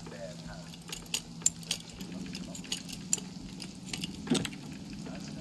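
A metal lock clicks and rattles as it is picked.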